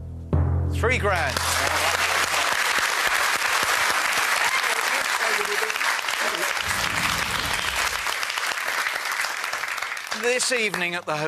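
A studio audience cheers and applauds loudly.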